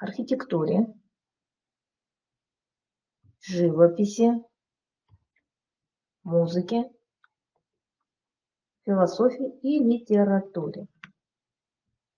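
A woman speaks calmly over a microphone in short phrases, as in an online lecture.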